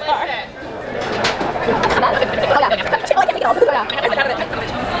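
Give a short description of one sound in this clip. Several young women chat and laugh nearby.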